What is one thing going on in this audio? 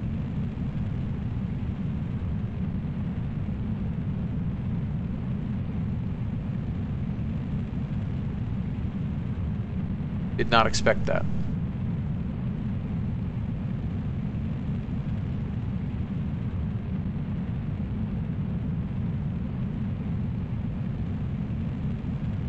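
A rocket engine roars steadily with a deep rumble.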